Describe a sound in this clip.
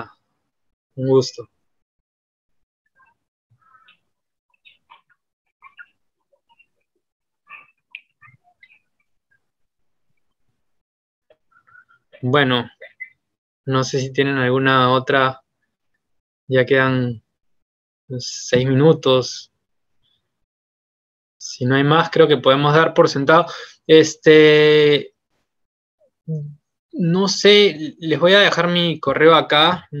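A young man speaks calmly through an online call, with pauses.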